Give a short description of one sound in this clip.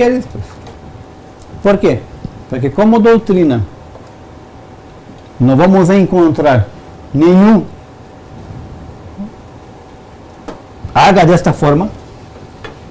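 A man speaks calmly, close by, with pauses between phrases.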